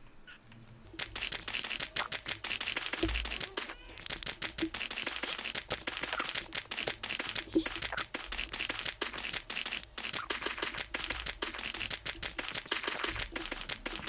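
A shovel digs rapidly into dirt with repeated crunching thuds.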